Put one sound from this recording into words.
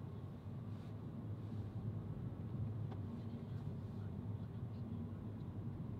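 A van drives by.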